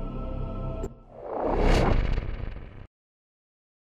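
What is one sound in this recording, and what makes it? A loud whoosh swells and quickly fades.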